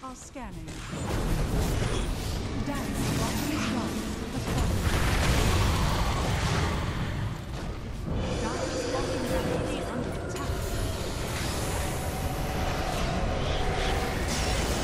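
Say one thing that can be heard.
Magic blasts and blows clash loudly in a hectic video game battle.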